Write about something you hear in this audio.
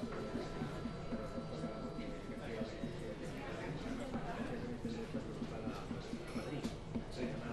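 A man speaks steadily through a microphone in a large room with a slight echo.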